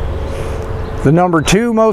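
An older man speaks calmly close by.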